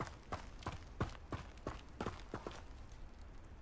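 Footsteps tap across a stone floor.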